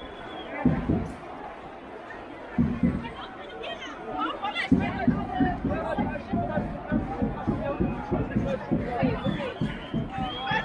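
A crowd of people talks and chants outdoors.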